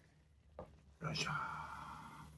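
A heavy clay pot thumps down onto a wooden board.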